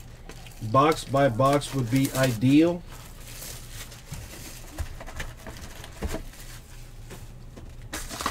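Plastic wrapping crinkles.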